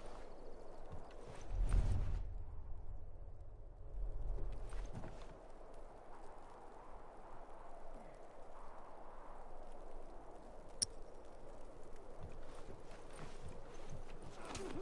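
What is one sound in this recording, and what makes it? Footsteps thud softly on wooden boards.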